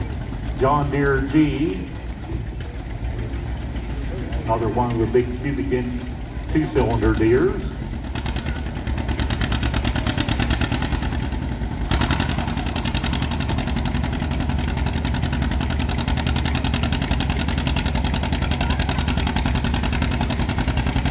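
A tractor engine roars loudly and steadily.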